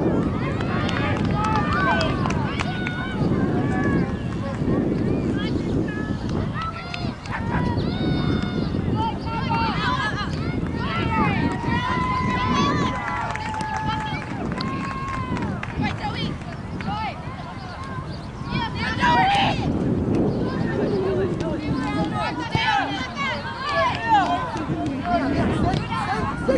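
Young women call out and shout to each other across an open field.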